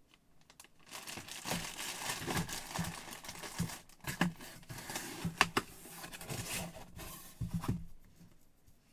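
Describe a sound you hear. A cardboard box scrapes and knocks as it is moved.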